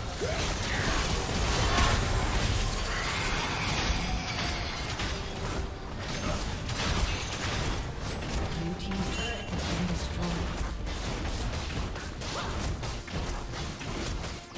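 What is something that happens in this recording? Spell blasts and hits crackle and boom in a game battle.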